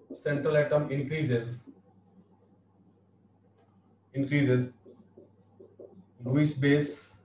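A man speaks clearly and calmly, close by, in short bursts with pauses.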